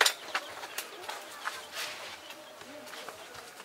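Metal clanks and knocks against a wheelbarrow.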